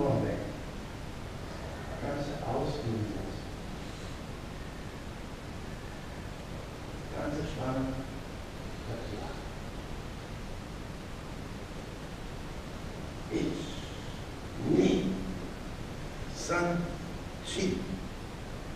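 A man speaks calmly in short phrases in a large echoing hall.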